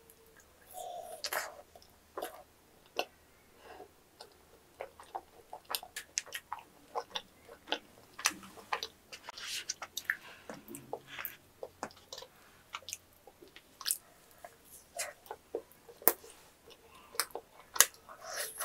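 A woman chews crunchy food close to a microphone, with sharp crackling bites.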